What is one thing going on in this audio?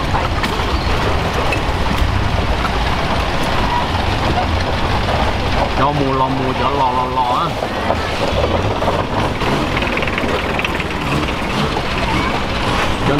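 A long-tail boat engine drones as the boat motors along.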